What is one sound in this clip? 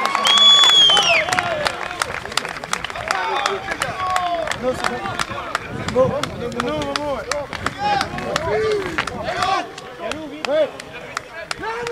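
Players shout to each other on the field.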